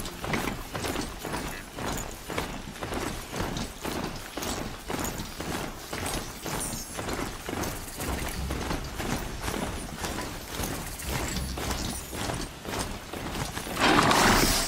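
Heavy mechanical hooves clatter rhythmically on dirt as a machine mount gallops.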